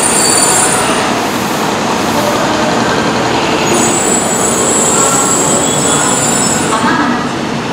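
A train rolls slowly along the track with a steady rumble.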